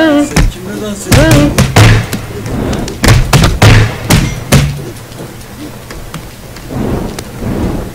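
Cartoonish blows thump as game figures brawl.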